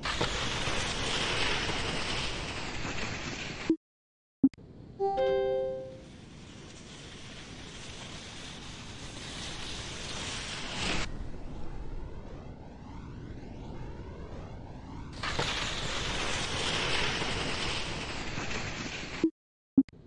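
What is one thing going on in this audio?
Wind rushes loudly past a ski jumper in flight.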